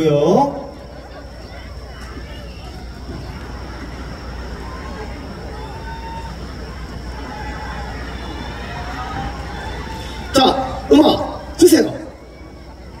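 A man speaks loudly in short bursts through a microphone and loudspeakers.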